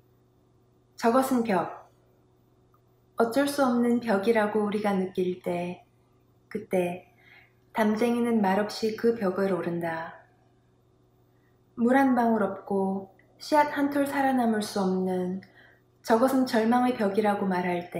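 A young woman reads aloud calmly into a microphone, close by.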